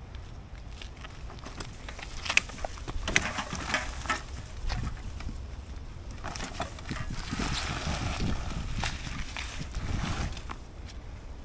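A loaded cart rattles and bumps over a dirt path.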